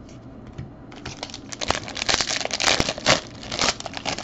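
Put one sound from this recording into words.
Foil card packs crinkle and rustle as they are handled.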